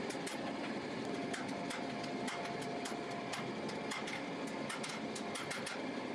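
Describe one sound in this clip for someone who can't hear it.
A hammer strikes hot steel on an anvil.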